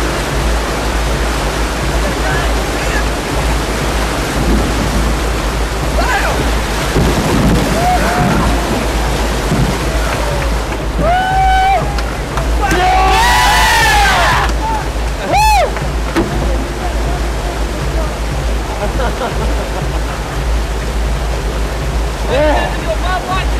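Rushing river rapids roar steadily.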